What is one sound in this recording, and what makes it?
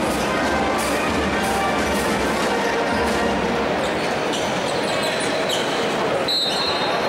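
Basketball sneakers squeak on the court.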